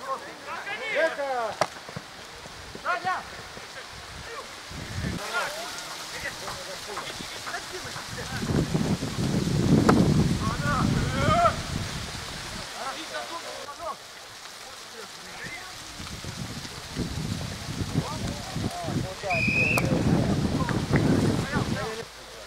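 Men shout to each other outdoors on an open football pitch.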